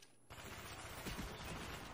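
Rapid gunfire rattles from an automatic rifle.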